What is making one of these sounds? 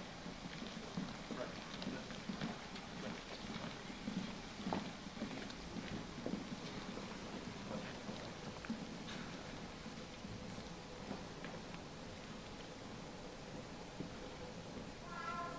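A crowd murmurs softly in a large hall.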